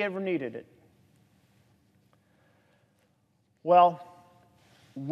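A middle-aged man speaks deliberately into a microphone, pausing between phrases.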